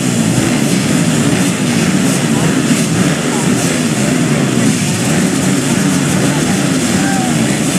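Many motorbike engines idle and rev loudly together.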